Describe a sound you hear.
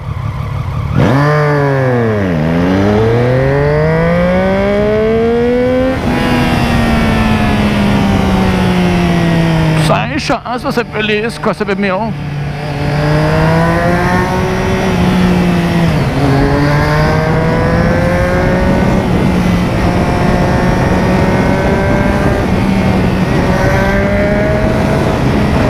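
A motorcycle engine revs hard, rising and falling as the gears shift.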